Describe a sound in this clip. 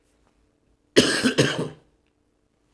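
An elderly man coughs.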